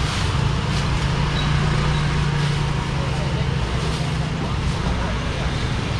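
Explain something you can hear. Plastic bags rustle.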